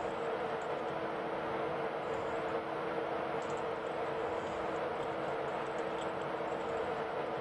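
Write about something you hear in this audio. A train's electric motor hums steadily.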